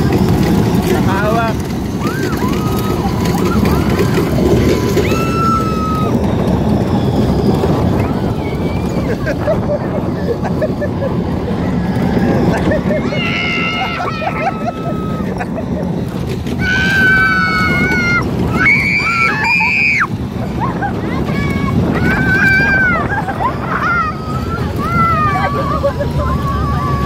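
A ride rumbles loudly.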